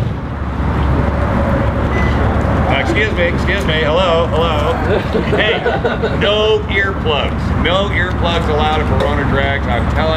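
People talk nearby in a crowd outdoors.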